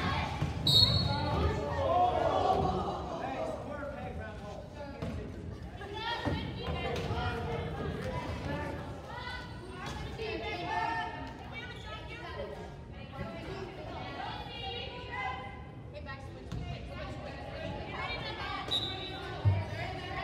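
Wheelchair wheels squeak and rattle on a hard court.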